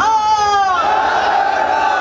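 A man in a crowd shouts loudly.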